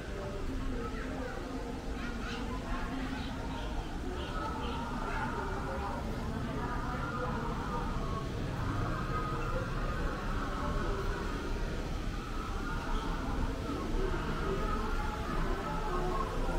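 A crowd of people chatter in the distance outdoors.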